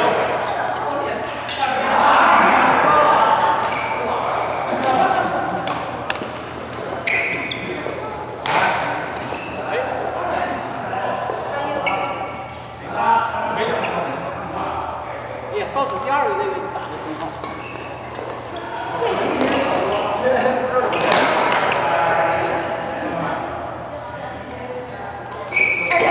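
Shuttlecocks are struck with sharp pops of badminton rackets in a large echoing hall.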